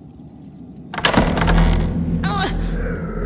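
A heavy wooden trapdoor creaks and bangs open.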